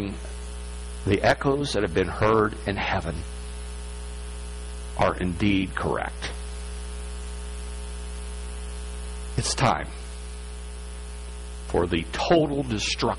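A middle-aged man speaks with animation through a microphone in a large echoing hall, pausing between phrases.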